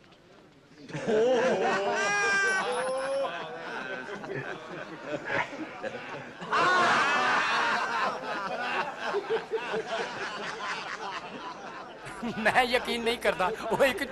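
A man talks cheerfully.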